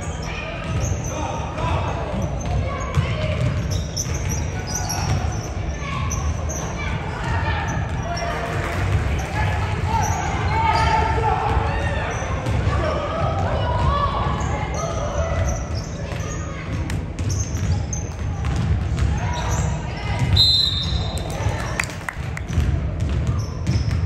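Basketballs bounce on a wooden floor in a large echoing gym.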